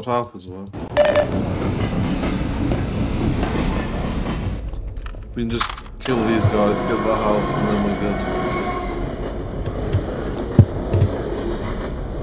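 A young man talks casually close to a microphone.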